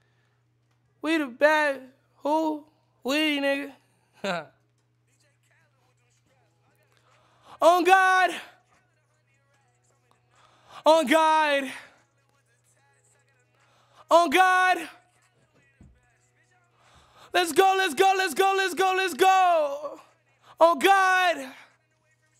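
A young man sings short phrases close to a microphone, with pauses between them.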